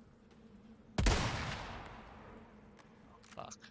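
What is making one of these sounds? A rifle fires a single loud shot that echoes and fades.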